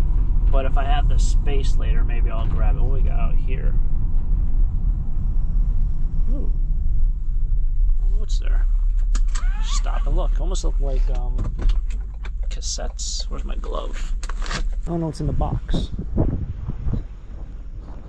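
A van engine hums steadily from inside the cab.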